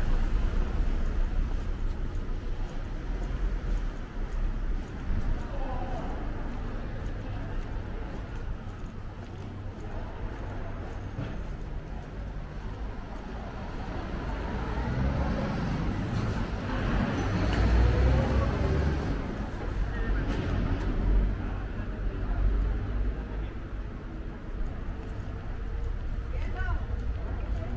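Footsteps tap on cobblestones outdoors.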